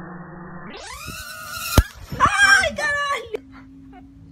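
A young woman shrieks close by.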